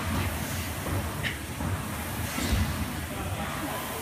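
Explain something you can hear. A rowing machine whirs as a woman rows.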